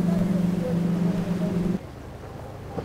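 Several powerful outboard motors roar loudly as a speedboat races past.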